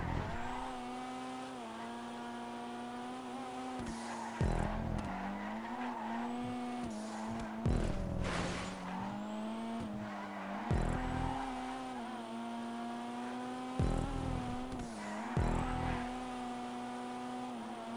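A car engine drones steadily, its pitch dipping and rising at gear changes.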